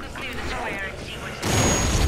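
A heavy stomp lands with a wet thud.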